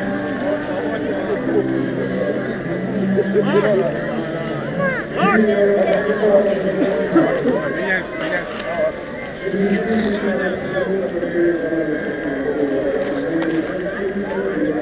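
A crowd of men, women and children talks and calls out all around outdoors.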